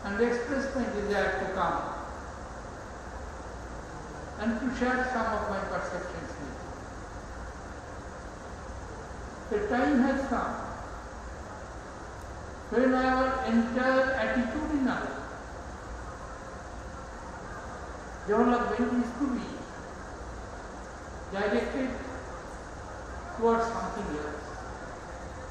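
An elderly man speaks slowly and formally into a microphone, in short phrases with long pauses, his voice echoing a little through loudspeakers.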